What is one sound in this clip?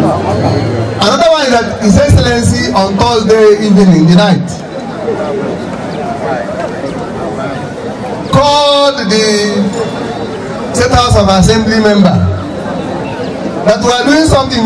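A crowd of men shouts and cheers loudly outdoors in bursts.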